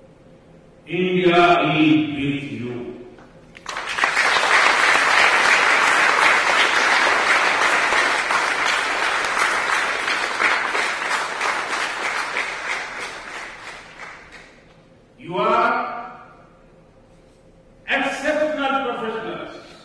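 An elderly man speaks with animation into a microphone, in short bursts.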